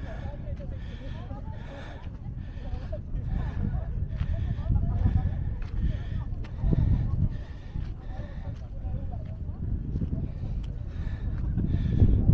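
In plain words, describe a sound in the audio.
Footsteps crunch steadily on loose sand and gravel.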